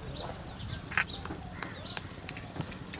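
A bat knocks a cricket ball with a sharp crack.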